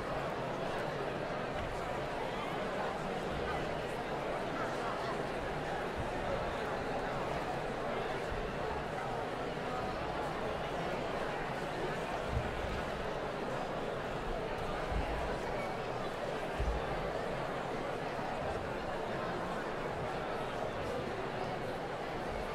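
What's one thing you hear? A large audience murmurs and chatters in a large echoing hall.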